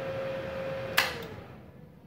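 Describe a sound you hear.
A switch clicks sharply.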